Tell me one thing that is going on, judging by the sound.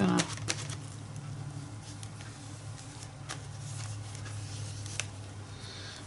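A paintbrush swishes softly across paper.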